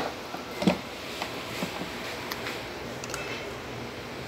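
A timer dial clicks as it is turned.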